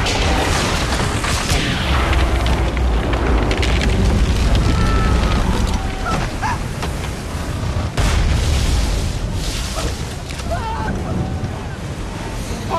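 Strong storm wind roars steadily.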